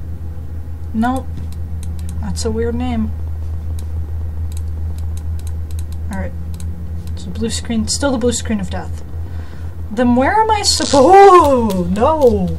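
A young woman talks animatedly into a close microphone, her voice rising and falling.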